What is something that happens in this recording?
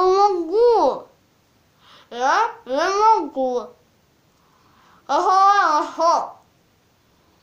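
A young girl sings loudly in short bursts, close by.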